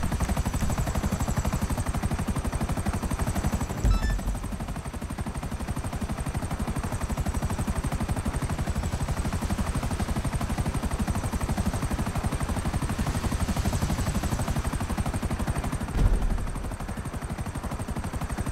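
A helicopter's rotor blades thump rapidly and steadily overhead.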